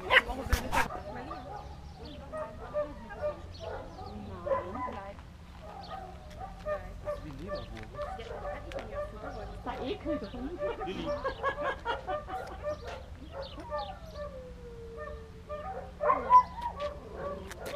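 Men and women chat at a distance outdoors.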